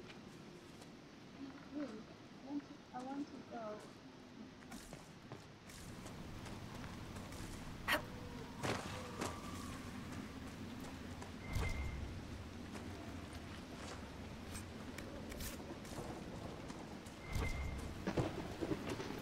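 Footsteps crunch over ground.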